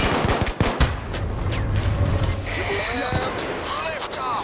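An explosion booms with a low rumble.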